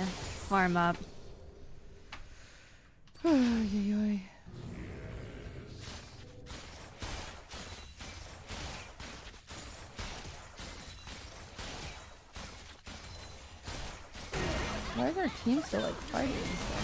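Video game spell effects zap and clash.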